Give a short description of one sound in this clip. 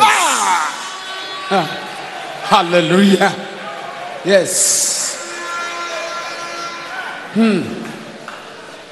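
An elderly man preaches in loud, sung bursts through a microphone.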